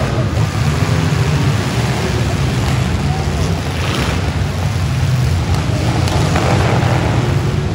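Cars crash and bang into each other.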